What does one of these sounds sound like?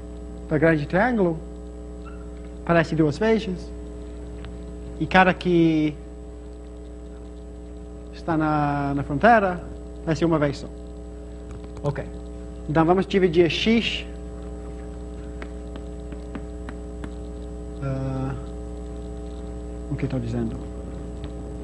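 A man speaks in short bursts, lecturing with animation.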